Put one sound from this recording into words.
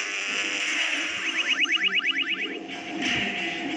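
A motorcycle crashes and skids along the road.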